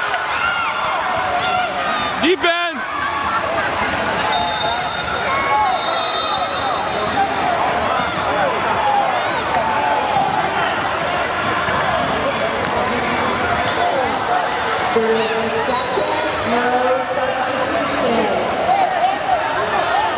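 Sneakers squeak on the hardwood court.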